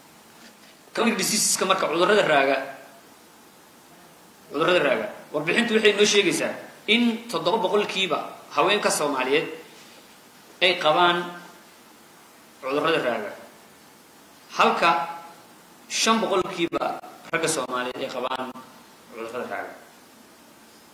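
A man speaks calmly into a microphone, heard through a loudspeaker in an echoing room.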